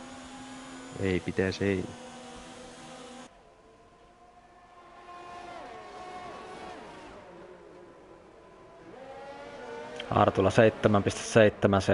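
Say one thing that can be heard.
A racing car engine roars loudly as it passes close by.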